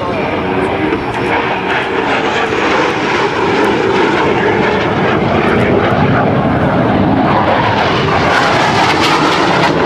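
A jet engine roars loudly overhead as a fighter plane flies past.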